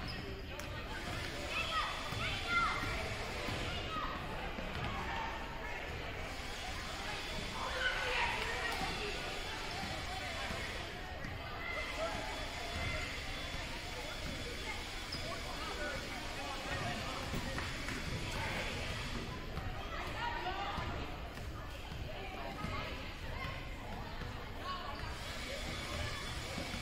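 Basketballs bounce and thud on a hardwood floor in a large echoing gym.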